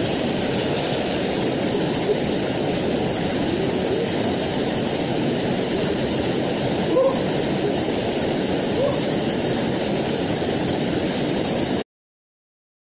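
A small waterfall rushes and splashes steadily into a pool.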